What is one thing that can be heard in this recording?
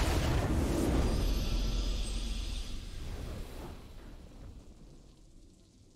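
A triumphant fanfare swells and fades.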